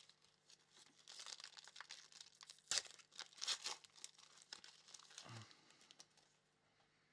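A foil wrapper crinkles as it is torn open.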